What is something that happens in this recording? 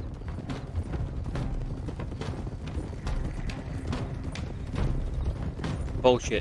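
Horses' hooves clop steadily on a muddy track.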